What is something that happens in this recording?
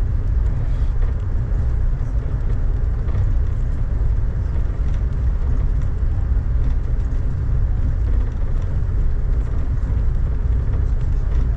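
Raindrops patter against a window.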